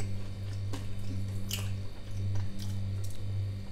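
Fingers pick and click against the inside of a ceramic bowl.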